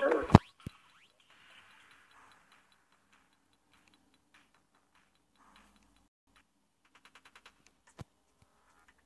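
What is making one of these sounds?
Soft game menu ticks click as items are picked up and moved.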